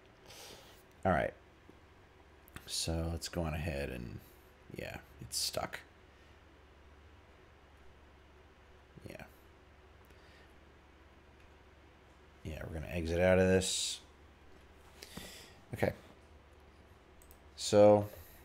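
A man speaks casually into a microphone, in short bursts.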